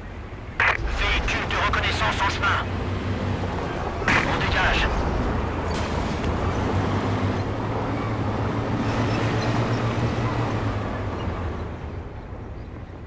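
Explosions rumble low.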